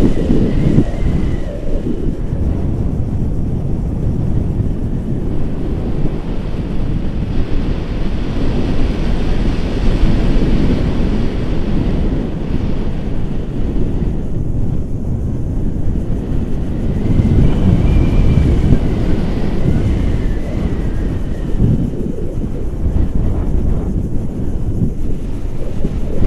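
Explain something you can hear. Wind roars steadily against a microphone outdoors.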